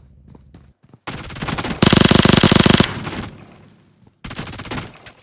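A smoke grenade bursts with a loud hiss.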